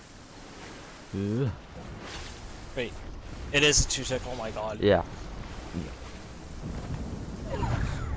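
Water splashes as a swimmer paddles through it.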